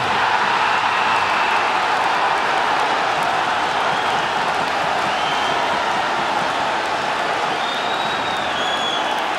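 A large crowd roars and cheers steadily in an echoing arena.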